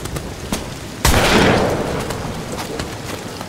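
A revolver fires a single loud shot that echoes and fades.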